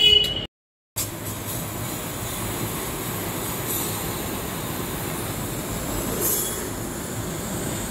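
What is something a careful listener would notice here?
A pressure washer sprays water in a steady hiss.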